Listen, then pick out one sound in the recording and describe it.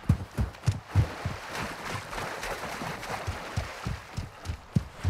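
Waves wash onto a shore.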